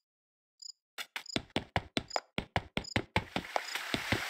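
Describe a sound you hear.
Footsteps tap quickly on a stone path.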